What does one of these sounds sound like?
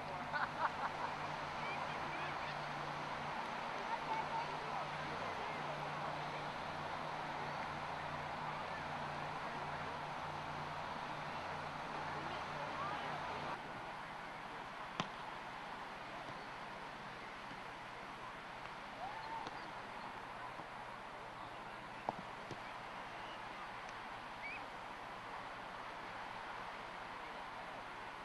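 Many people chatter and call out at a distance on a busy beach outdoors.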